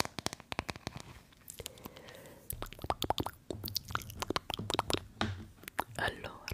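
Fingers brush and rustle right against a microphone.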